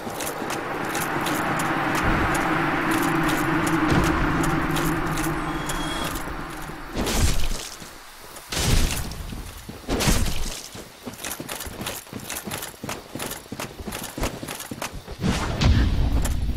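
Armoured footsteps crunch on grass.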